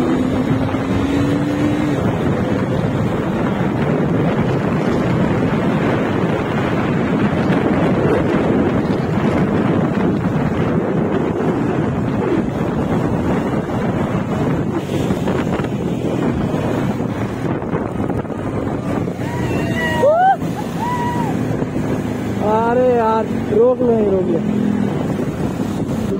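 Wind rushes loudly over a microphone on a moving motorcycle.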